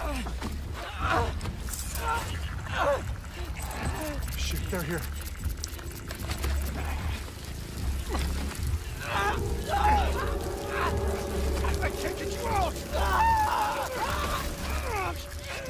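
A man groans and grunts in pain, close by.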